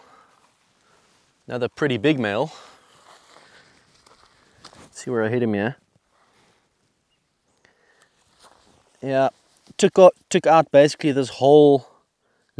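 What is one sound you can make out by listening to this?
Dry grass rustles as something is dragged through it.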